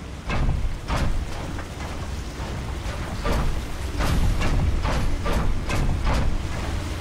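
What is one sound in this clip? Heavy metal footsteps clank steadily on a metal walkway.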